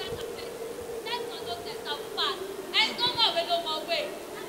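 A young woman speaks loudly through a microphone.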